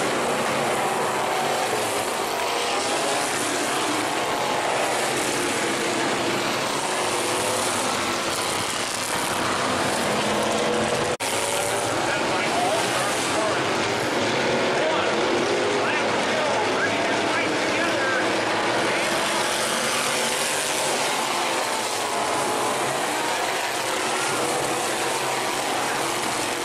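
Race car engines roar loudly around a dirt track, outdoors.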